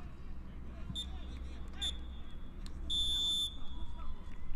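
A referee's whistle blows in short, sharp blasts across an open field.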